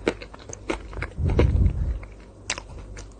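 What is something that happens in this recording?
A young woman gulps a drink close to a microphone.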